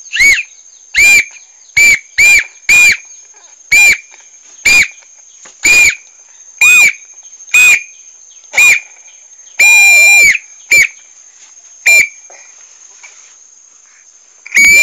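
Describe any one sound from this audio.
A child blows short, shrill toots on a toy whistle, over and over.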